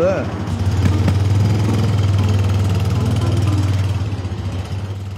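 A motor scooter engine hums as the scooter rides past and fades away.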